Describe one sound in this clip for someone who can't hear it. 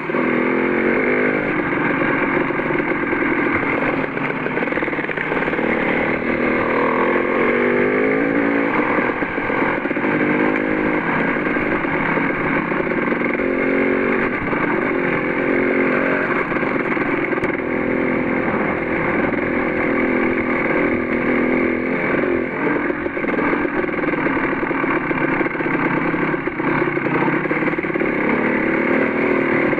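Tyres crunch over gravel.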